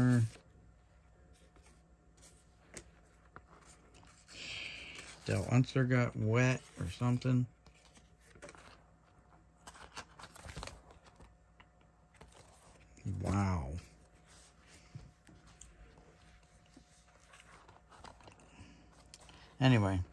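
Plastic card sleeves rustle and crinkle softly under fingers.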